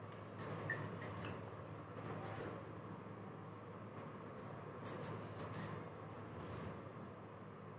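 Hands rub and rustle softly against skin and hair.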